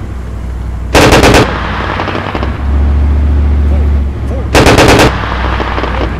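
A tank cannon fires with a loud roaring blast.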